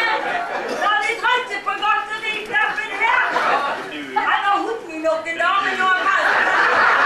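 A man speaks loudly on a stage.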